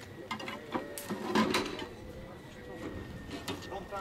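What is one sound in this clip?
A sledgehammer bangs sharply on metal.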